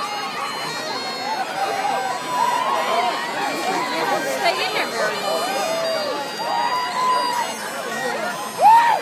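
A large crowd of men and women shouts and screams with excitement outdoors.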